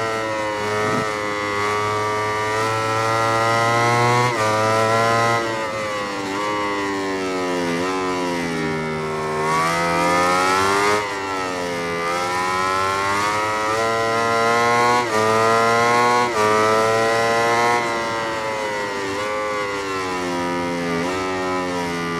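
A motorcycle engine shifts gears with sudden drops in pitch.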